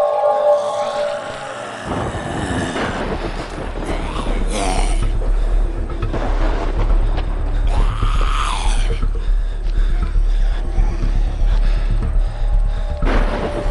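Zombies groan and moan nearby.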